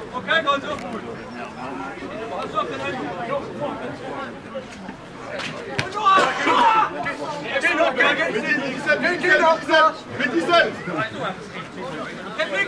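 Men shout and call out to each other across an open field outdoors.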